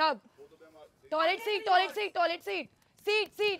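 A young woman calls out excitedly.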